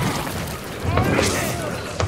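Electricity crackles and zaps.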